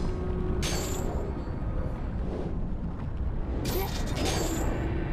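Lava rumbles low and steadily.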